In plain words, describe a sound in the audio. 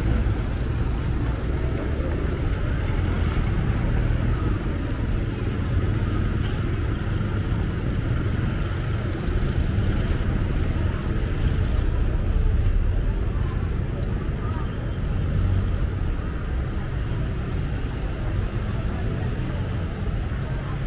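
Footsteps and sandals shuffle on a walkway.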